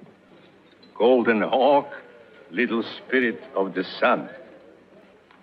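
A man speaks slowly and solemnly, close by.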